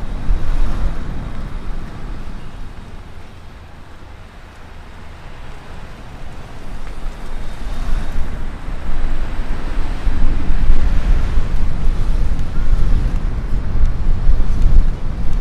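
A car drives along a road with a steady low rumble.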